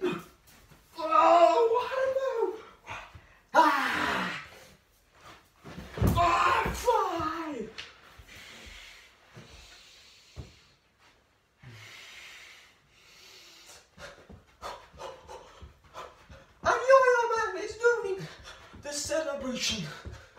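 A teenage boy speaks loudly and breathlessly close by.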